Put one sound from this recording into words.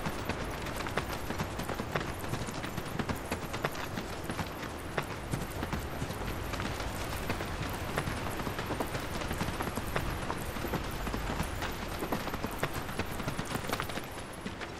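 Footsteps tread steadily along a path.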